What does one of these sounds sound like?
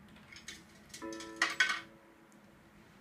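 A pinball machine plays electronic chimes and tones.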